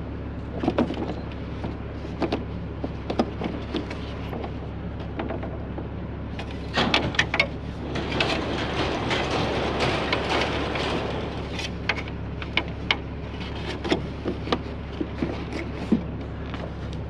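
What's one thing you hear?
A strap clicks and rattles against a metal grille.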